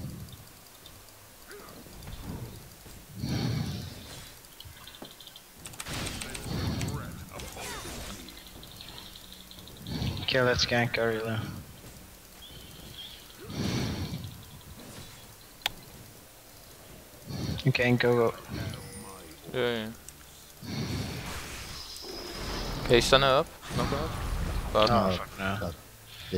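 Spell effects whoosh and crackle in a game battle.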